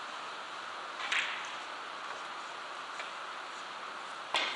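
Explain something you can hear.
A cue tip scrapes briefly against chalk.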